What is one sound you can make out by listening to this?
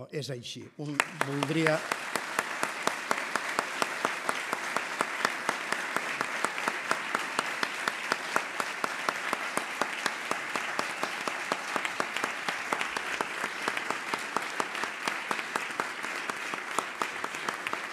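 A large audience applauds loudly in a big hall.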